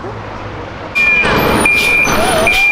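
A truck's horn blares loudly.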